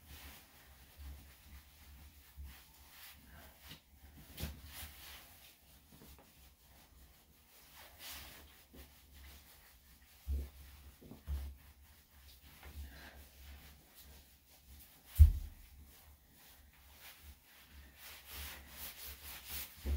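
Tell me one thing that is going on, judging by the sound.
A towel rubs and rustles against a wet dog's fur.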